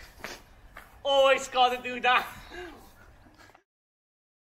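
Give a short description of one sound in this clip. A young man laughs loudly outdoors.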